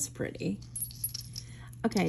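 A thin metal chain clinks softly.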